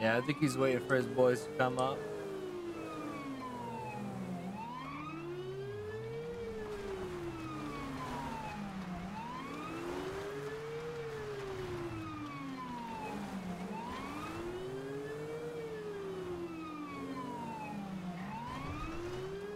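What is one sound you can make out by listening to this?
A police siren wails steadily, rising and falling in long sweeps.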